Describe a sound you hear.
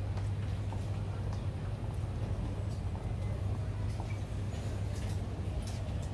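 Footsteps tap on a wooden walkway.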